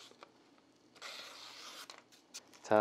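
A spray can hisses.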